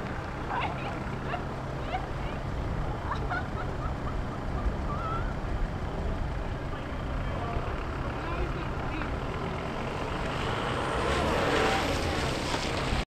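Wind rumbles across an open outdoor space.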